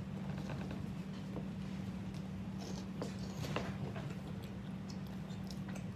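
A child bites and chews food close by, with soft crunching and smacking.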